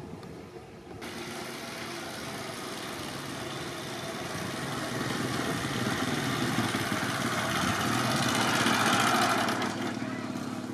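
A motorcycle engine approaches, growing louder.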